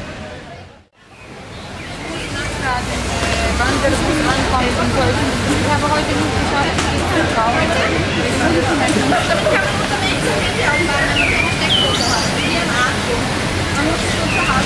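A crowd of young men and women chatter nearby outdoors.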